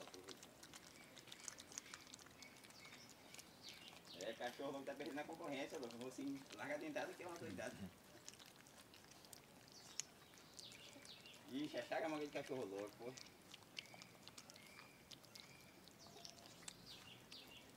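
Puppies chew and slurp wet fruit up close.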